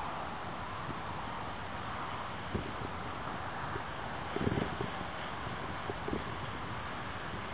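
A paraglider wing flaps and rustles in the wind.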